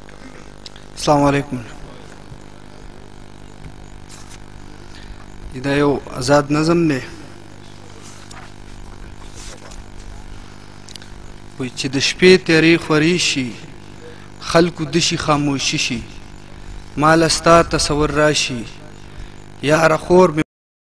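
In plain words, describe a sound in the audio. A young man speaks into a microphone over loudspeakers, in short bursts with pauses.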